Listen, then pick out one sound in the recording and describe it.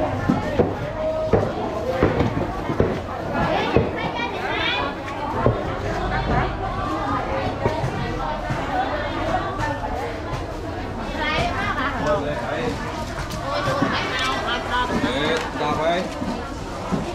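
A crowd of men and women chatter all around, close by and farther off.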